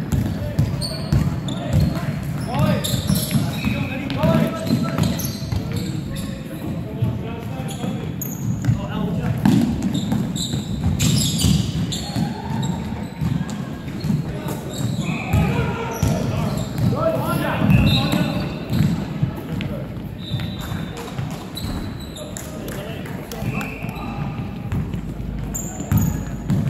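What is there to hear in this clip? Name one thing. Men shout and call out to each other across an echoing hall.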